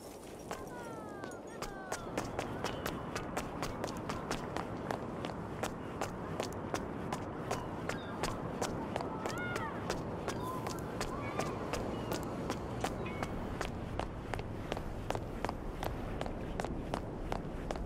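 Footsteps walk briskly on stone.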